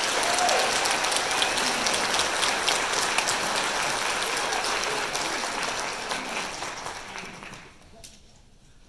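An audience claps and cheers loudly in a large hall, then fades.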